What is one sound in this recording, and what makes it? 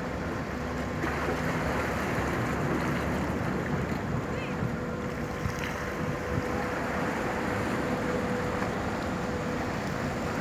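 Water churns and splashes from the ship's wake.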